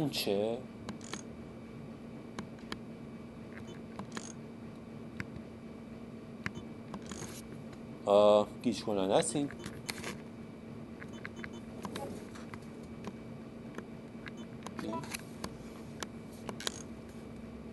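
Short electronic beeps and clicks sound as menu choices are made.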